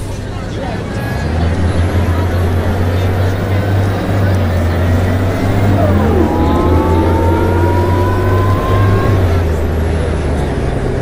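An automatic transmission whines, rising in pitch as a city bus gathers speed.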